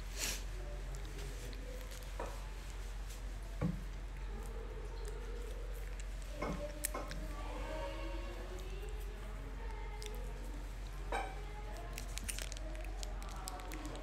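A young woman talks softly and close to the microphone.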